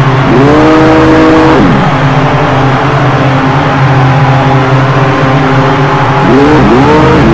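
A race car engine idles with a steady, low hum.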